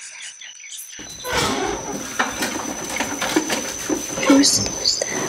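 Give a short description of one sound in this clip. Things rustle and knock about in a drawer.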